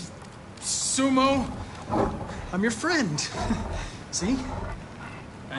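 A young man speaks in a startled voice.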